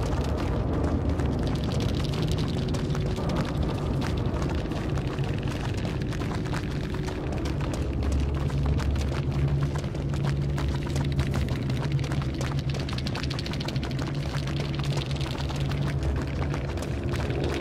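Several people run through rustling tall grass.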